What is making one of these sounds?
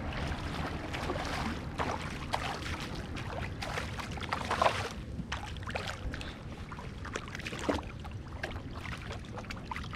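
A hooked fish splashes at the water's surface.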